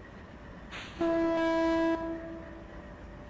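A train horn blows once, loud and short.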